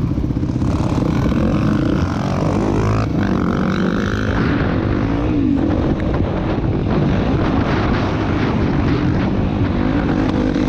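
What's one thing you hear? A quad bike engine roars up close, revving and changing pitch.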